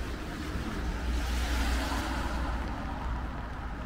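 A car passes by nearby with a swish of tyres on wet road.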